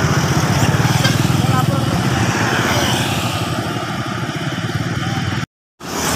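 Motorbike engines buzz past close by.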